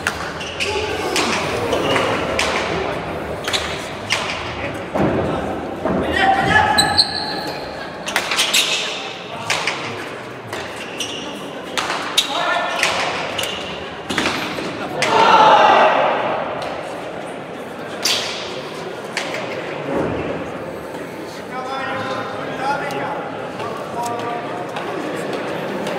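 Players' shoes squeak and patter on a hard floor.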